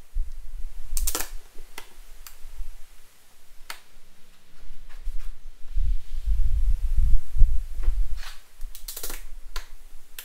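A tape measure snaps shut with a sharp click.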